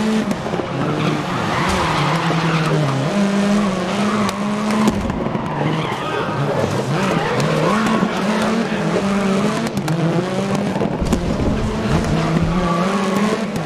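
Other racing car engines drone close by.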